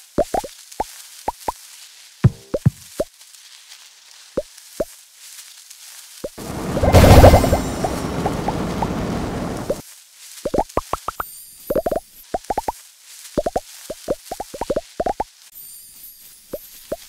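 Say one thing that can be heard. Short bright game blips pop again and again as a snake eats.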